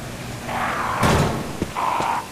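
A metal gate clanks open.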